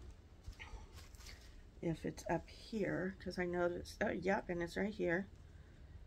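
Fabric rustles as a woman unfolds a garment.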